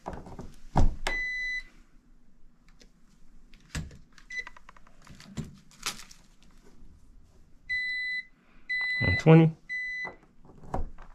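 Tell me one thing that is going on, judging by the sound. An electrical meter beeps with short steady tones.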